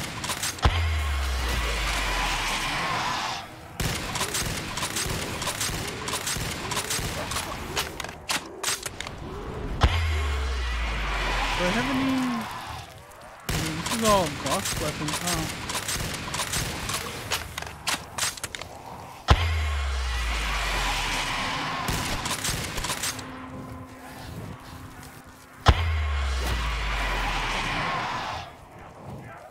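A rifle fires loud booming shots that ring out and fade.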